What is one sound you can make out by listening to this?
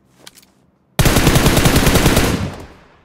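Rapid automatic gunfire rattles loudly close by.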